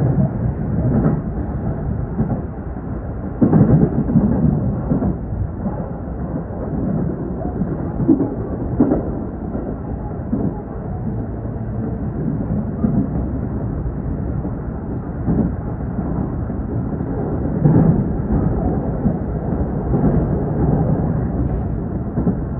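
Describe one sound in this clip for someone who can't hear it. Train wheels clatter over rail joints and switches.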